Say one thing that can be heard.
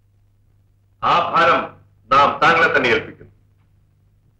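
A man speaks with force.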